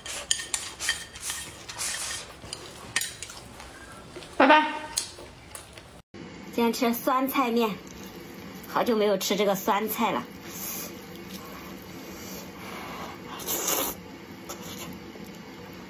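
A young woman slurps noodles loudly, close by.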